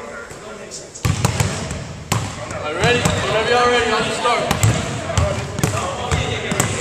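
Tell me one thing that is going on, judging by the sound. A basketball bounces on a hard wooden floor.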